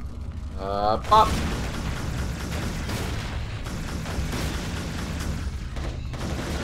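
Gunfire rattles in a video game.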